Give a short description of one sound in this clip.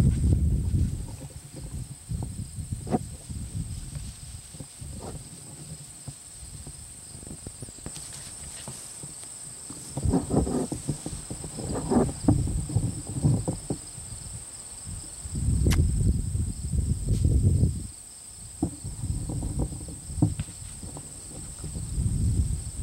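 Wind buffets outdoors with low rumbling gusts.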